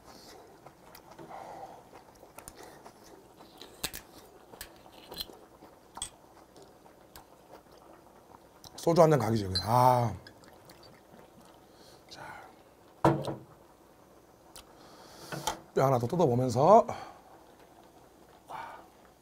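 A man slurps and chews food.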